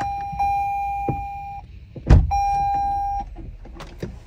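A car's warning chime beeps from the dashboard.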